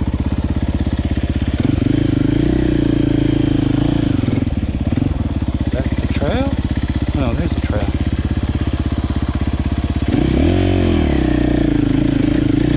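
A dirt bike engine chugs steadily up close, revving hard now and then.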